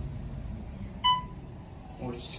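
An elevator chime dings once.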